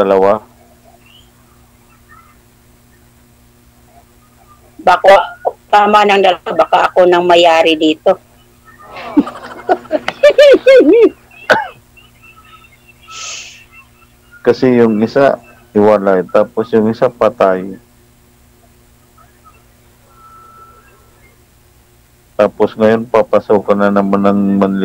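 A middle-aged man talks over an online call.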